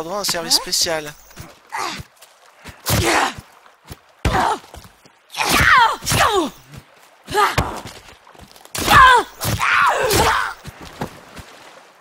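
A woman screams and shrieks in bursts.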